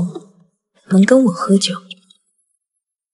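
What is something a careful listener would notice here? A young woman speaks softly up close.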